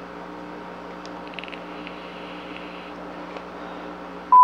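A man draws on a vape with a faint crackle.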